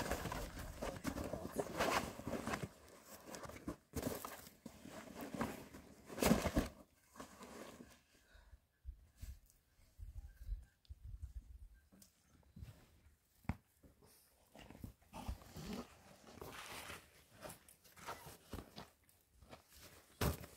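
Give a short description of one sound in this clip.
Heavy canvas rustles and flaps as it is handled.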